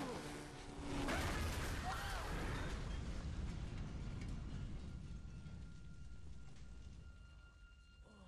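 A huge explosion roars and rumbles, then slowly dies away.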